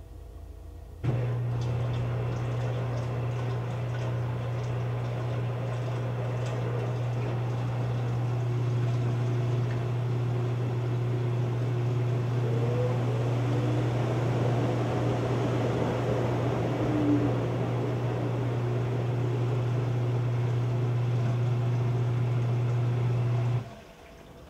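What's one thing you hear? A washing machine motor hums steadily.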